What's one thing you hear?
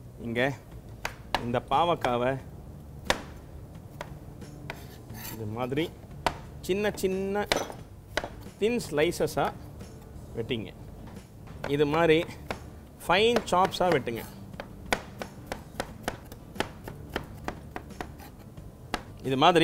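A knife chops vegetables with quick knocks.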